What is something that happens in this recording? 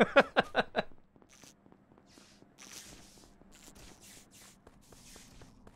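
Light footsteps patter quickly on a hard floor.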